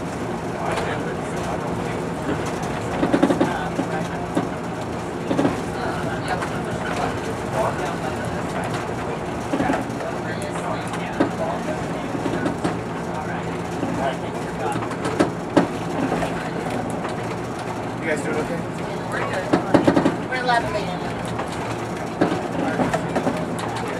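Steel wheels rumble and clack over the rails.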